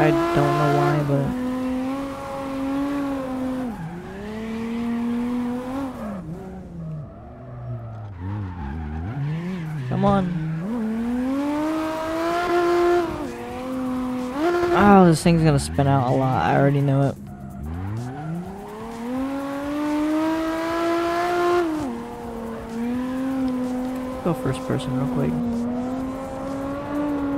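A car engine roars, rising and falling in pitch as it revs.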